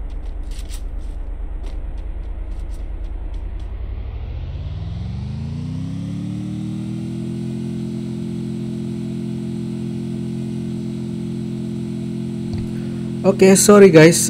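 A vehicle engine idles, then revs up and holds a steady roar.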